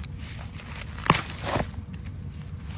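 Dry leaves rustle as hands dig through them.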